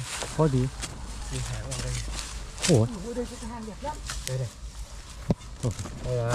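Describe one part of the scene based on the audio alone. A hoe chops into soil.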